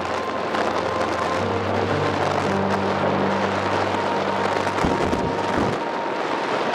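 A car engine hums steadily while driving, then quiets.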